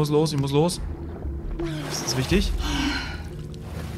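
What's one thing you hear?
Water splashes as a swimmer breaks the surface.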